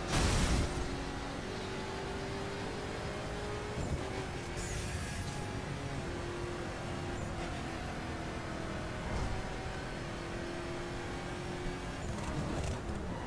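A twin-turbo V8 supercar engine roars at high speed.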